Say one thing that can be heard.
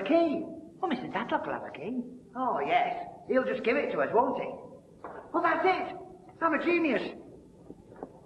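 A man talks loudly and with animation nearby.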